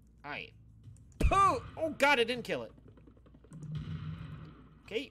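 A shotgun fires with a sharp blast.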